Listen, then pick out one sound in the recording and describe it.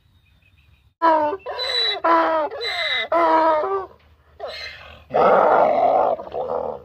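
A donkey brays loudly nearby.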